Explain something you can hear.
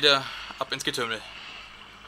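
Water splashes as a figure wades through it.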